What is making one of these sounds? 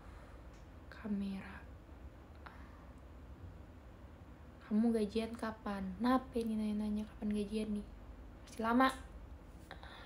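A young woman speaks close by, in short expressive bursts with sung-like held notes.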